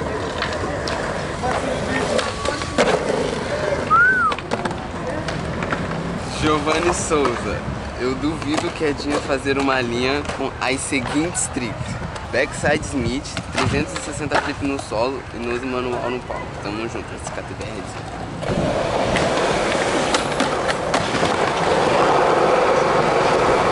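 Skateboard wheels roll and clatter on concrete.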